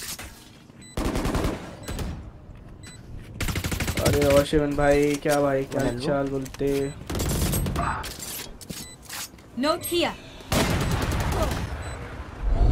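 Rapid gunfire bursts from a rifle.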